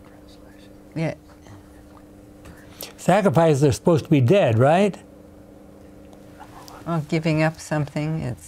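An elderly man speaks calmly and clearly into a microphone, in short phrases with pauses.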